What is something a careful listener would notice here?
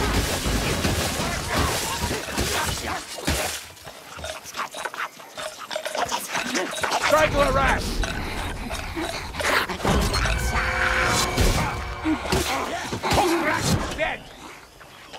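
A sword slashes and strikes with heavy thuds.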